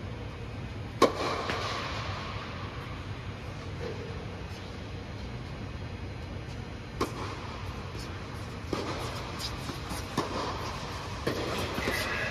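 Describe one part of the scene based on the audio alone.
Tennis balls are struck with rackets, each hit echoing in a large hall.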